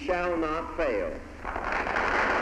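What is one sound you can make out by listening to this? An elderly man speaks through a microphone into a large echoing hall.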